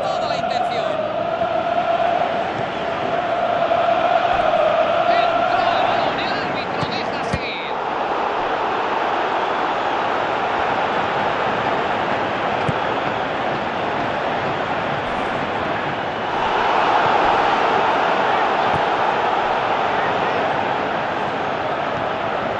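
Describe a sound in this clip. A large stadium crowd roars and chants steadily throughout.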